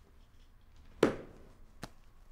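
A folder snaps shut with a dull thud.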